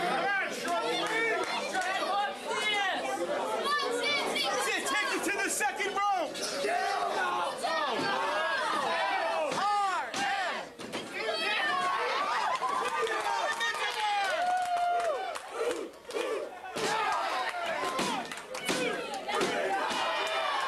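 A small indoor crowd shouts and cheers loudly.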